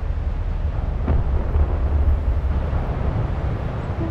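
A large wave crashes and churns.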